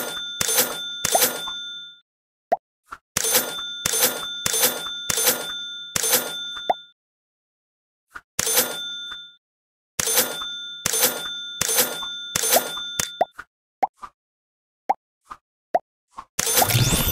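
Bright chiming tones ring out in short bursts, again and again.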